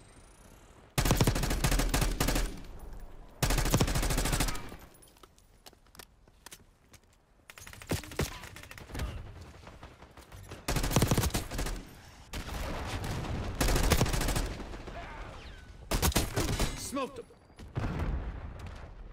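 Gunfire bursts loudly in short, rapid volleys.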